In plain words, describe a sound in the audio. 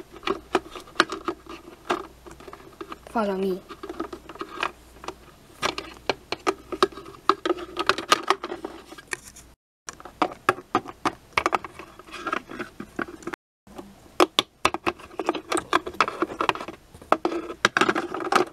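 Small plastic toys tap and click as they are handled.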